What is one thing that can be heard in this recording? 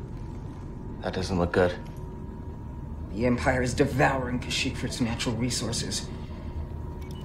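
A young man speaks with concern.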